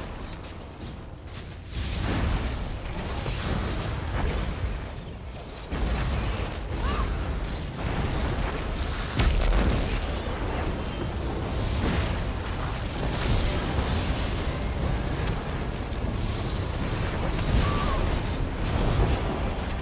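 Magic spells crackle and zap in rapid bursts.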